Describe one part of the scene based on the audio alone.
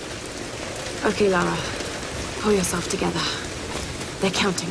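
A young woman speaks to herself in a determined voice.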